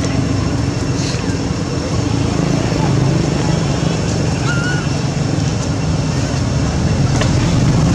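A plastic bottle crackles as a monkey drinks from it.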